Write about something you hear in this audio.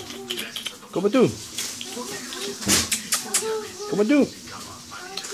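A small dog yaps and whines nearby.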